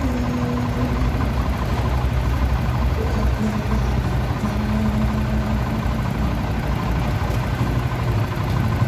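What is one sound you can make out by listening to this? A truck engine idles with a deep, steady rumble.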